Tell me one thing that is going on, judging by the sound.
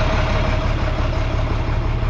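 A truck and trailer rumble along a road.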